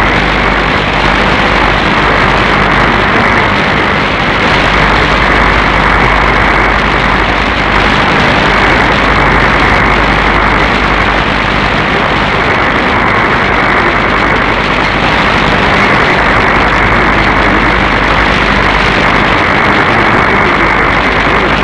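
Radio static hisses and crackles steadily from a receiver.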